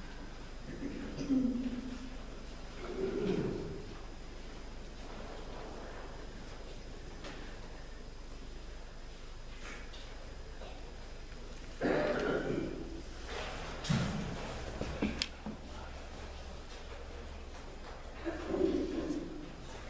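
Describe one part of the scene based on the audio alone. A man's voice chants in short phrases, echoing through a large hall.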